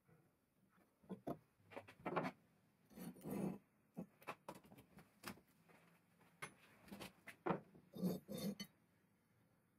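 Metal parts clank and scrape as they are handled.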